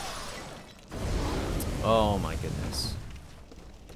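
Flames burst with a deep roar.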